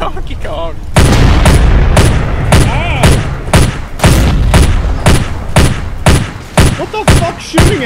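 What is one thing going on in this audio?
A heavy deck gun fires in rapid bursts.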